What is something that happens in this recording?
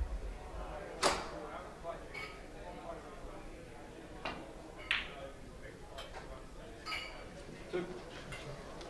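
Billiard balls click together sharply.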